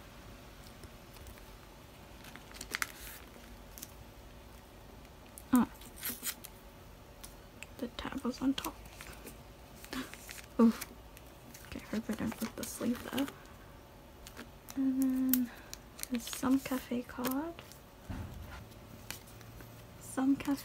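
Plastic sleeves rustle and crinkle under handling fingers.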